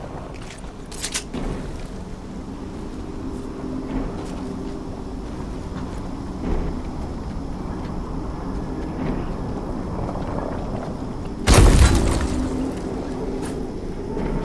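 Footsteps run over grass outdoors.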